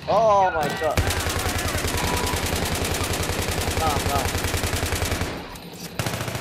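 Rapid gunfire rattles in a fast steady burst.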